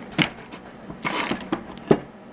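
Metal scrapes against metal in a vise.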